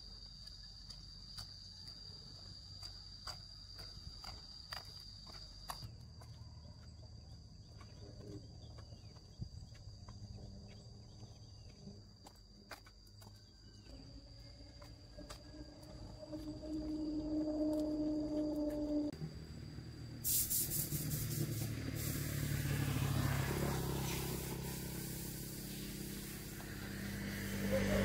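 Footsteps tap on a paved road.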